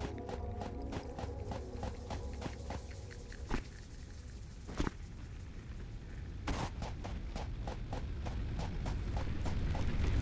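Footsteps crunch over sand.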